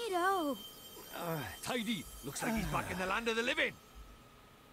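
A man speaks in a lively voice.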